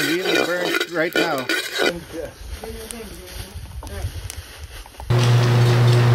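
Coffee beans rattle and scrape as they are stirred in a metal pan.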